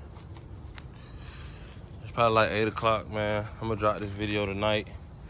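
A small dog's paws patter softly over dirt and dry leaves.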